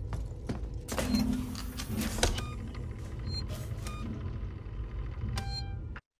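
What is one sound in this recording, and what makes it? Switches click on a panel.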